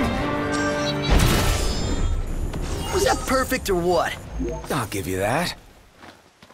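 A sword clangs and slashes against a beast.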